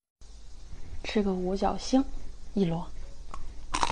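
A young woman speaks briefly in a soft voice close to a microphone.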